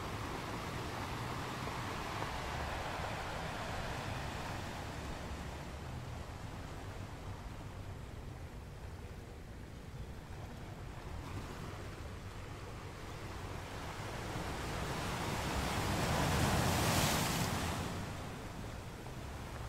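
Seawater washes and hisses over the rocks.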